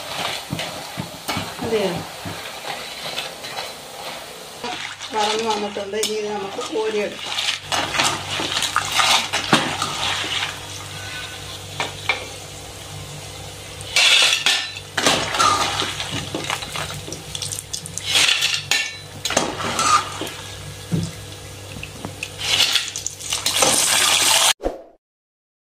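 Oil sizzles and bubbles steadily in a frying pan.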